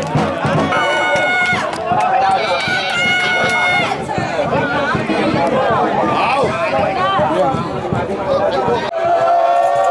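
A crowd of fans chants and sings loudly outdoors.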